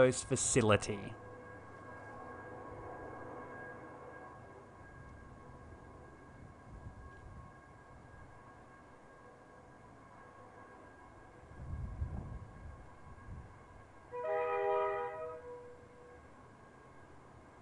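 A diesel train engine drones steadily in the distance.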